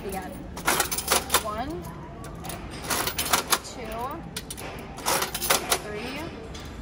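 A coin-operated crank ratchets and clicks as it is turned.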